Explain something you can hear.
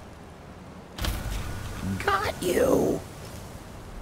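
A fiery spell bursts out with a loud roaring whoosh.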